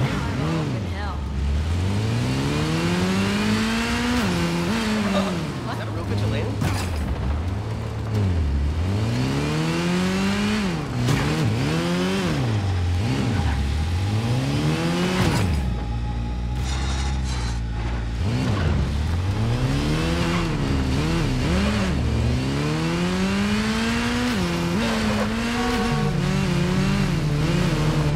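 A motorcycle engine revs up and down repeatedly, rising and falling in pitch.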